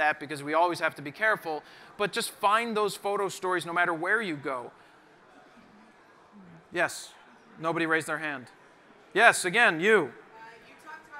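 A young man speaks with animation into a microphone in a large hall.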